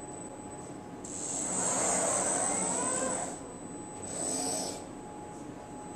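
An electric motor whirs, rising and falling in pitch as a robotic arm moves.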